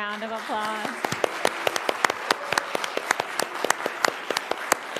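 A small group claps their hands.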